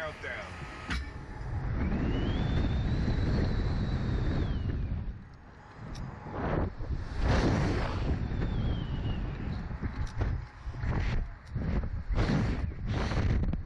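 Wind rushes loudly past a ride as it flings upward.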